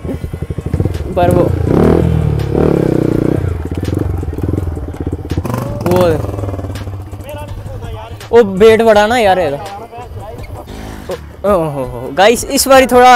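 A motorcycle engine idles and revs close by.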